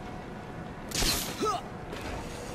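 A grappling line fires with a sharp whoosh.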